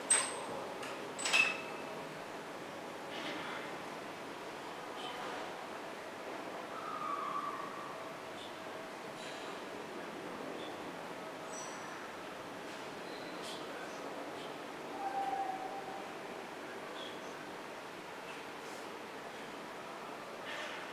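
Worshippers shuffle and rustle quietly in a large echoing hall.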